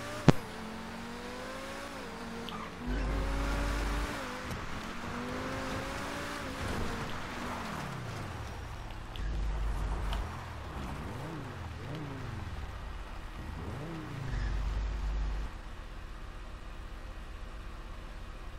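A sports car engine revs and roars as it speeds along.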